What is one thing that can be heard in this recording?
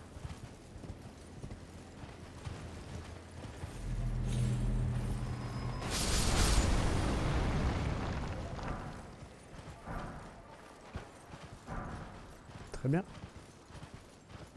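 Hooves thud steadily as a horse trots along.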